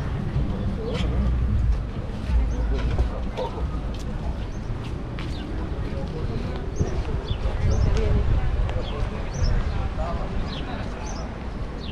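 People chatter and talk in the distance.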